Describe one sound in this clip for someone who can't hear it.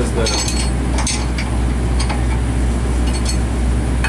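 A ratchet wrench clicks as it turns.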